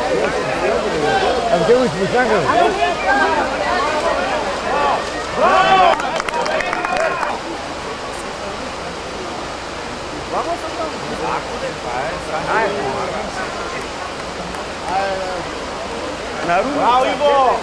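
A river rushes over rocks outdoors.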